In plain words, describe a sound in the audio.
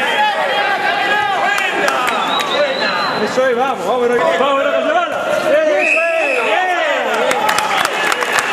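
Men in a crowd yell excitedly nearby.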